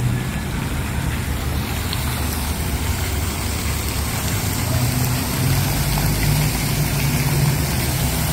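A fountain splashes and sprays water.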